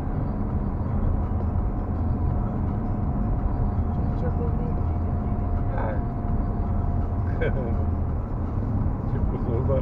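A car's engine and tyres rumble on a road, heard from inside the car.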